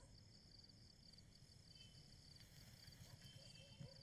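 Paper rustles as a roll is pushed into a bag.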